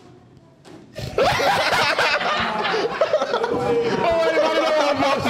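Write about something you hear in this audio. A group of young men laugh and cheer loudly.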